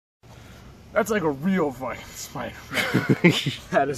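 A young man talks animatedly close by.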